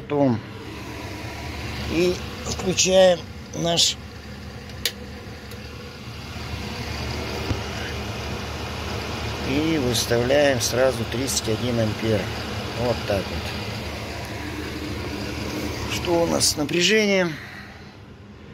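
A machine's cooling fan hums steadily.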